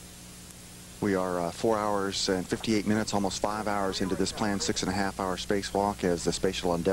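A man speaks calmly over a crackly radio.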